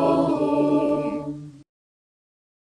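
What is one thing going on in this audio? Voices sing a hymn over an online call and stop.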